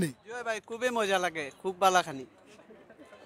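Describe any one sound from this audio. A young man speaks loudly and animatedly close by.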